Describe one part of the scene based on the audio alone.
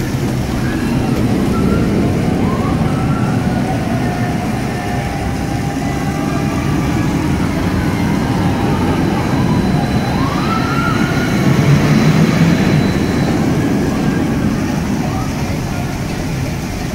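A roller coaster rumbles and roars along its steel track nearby.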